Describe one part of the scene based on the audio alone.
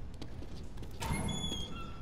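A heavy metal door creaks as it is pushed open.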